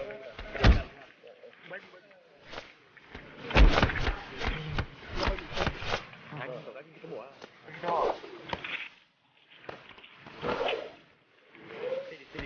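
Bodies thump and clothes rustle in a struggle.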